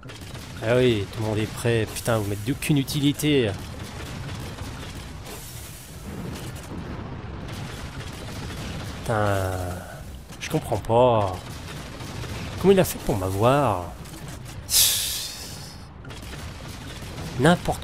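A heavy mounted gun fires rapid bursts.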